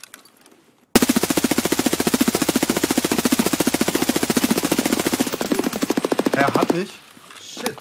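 Rapid gunfire rattles in a long burst.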